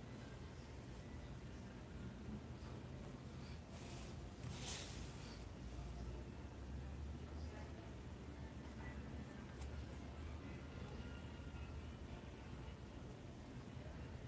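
A paintbrush strokes softly across cloth.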